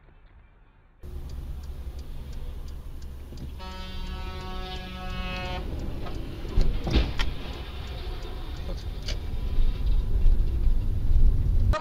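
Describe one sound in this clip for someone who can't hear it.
A car engine hums steadily as it drives along a wet road.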